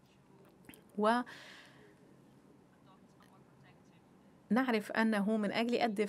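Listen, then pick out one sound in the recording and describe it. A woman speaks calmly into a microphone, heard through a loudspeaker.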